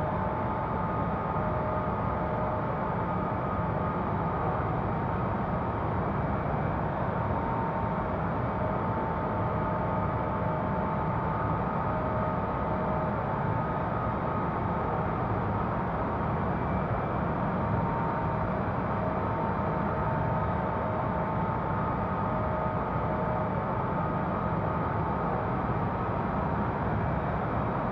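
Jet engines drone steadily with a low rumble and a faint whine.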